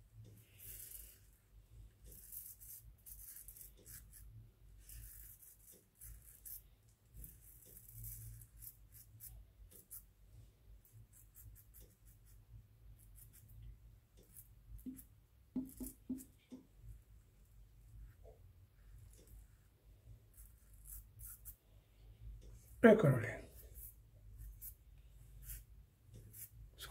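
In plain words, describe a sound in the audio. A razor scrapes softly across stubble.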